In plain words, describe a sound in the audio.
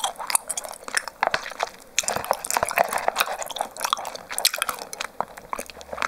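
A plastic cup crinkles and taps as it is handled close to a microphone.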